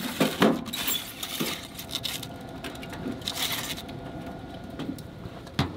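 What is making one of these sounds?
A metal tray clatters as it is slid into a stove.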